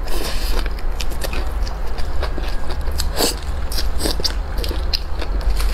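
A young woman chews and bites meat off a bone with wet, smacking sounds close to a microphone.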